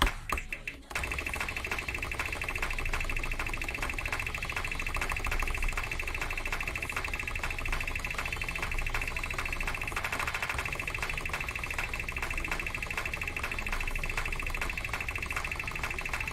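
Keyboard keys tap rapidly and steadily.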